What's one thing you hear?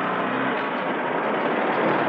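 A car drives slowly over gravel.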